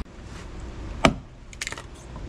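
An axe splits wood with a sharp crack.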